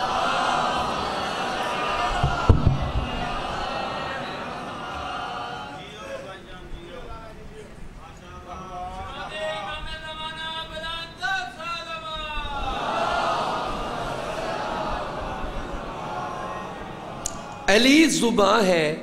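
A man recites in a chanting voice through a microphone, heard over loudspeakers.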